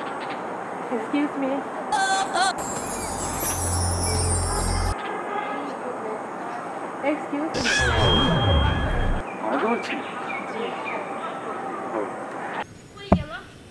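A young woman speaks with animation close by.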